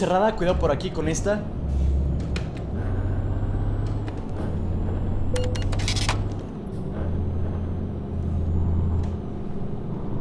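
A bus engine drones low and steady, rising and falling slightly.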